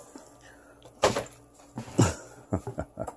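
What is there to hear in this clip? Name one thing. A cardboard box thumps and scrapes as it is moved.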